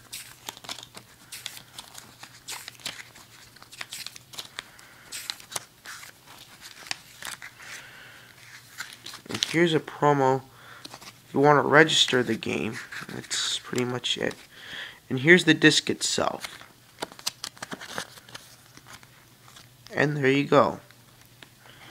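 Paper pages rustle and flip close by.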